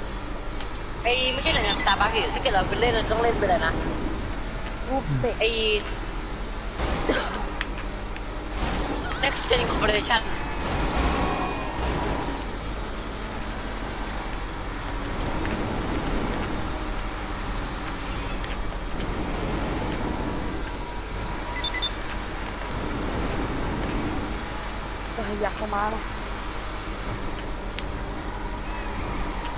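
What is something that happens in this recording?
A car engine roars steadily at speed.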